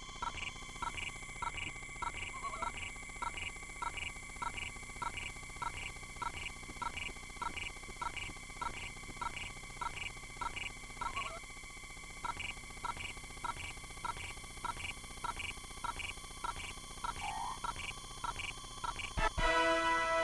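Electronic game music plays with a quick, steady beat.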